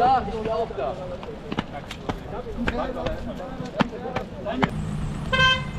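Young men talk and call out outdoors.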